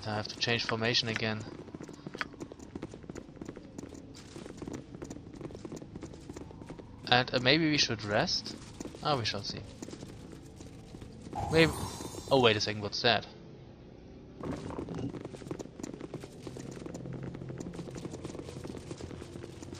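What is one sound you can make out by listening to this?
Footsteps patter on a stone floor as several people walk.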